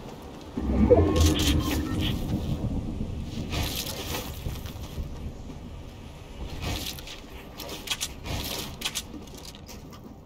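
Building pieces snap into place with quick sharp clatters.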